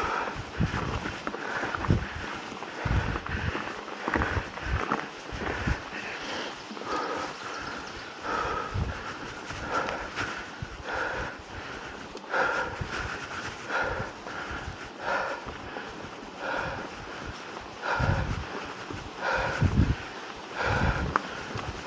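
A mountain bike rattles and thumps over bumps in the trail.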